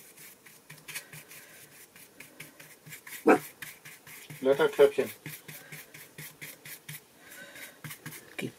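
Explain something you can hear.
A brush dabs and scrapes lightly on paper.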